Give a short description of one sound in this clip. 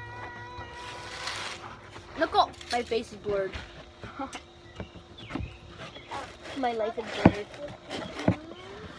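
A cardboard box lid rustles and scrapes close by.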